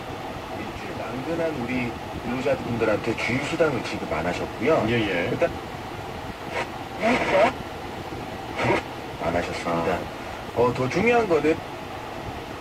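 A car radio plays broadcast sound as the station changes.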